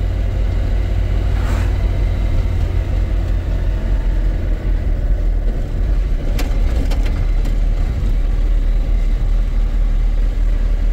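A car's engine and tyres rumble low and steady on the road.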